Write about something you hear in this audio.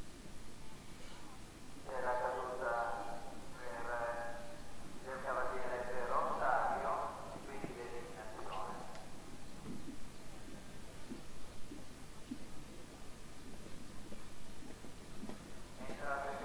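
A horse's hooves thud softly on sand as it canters.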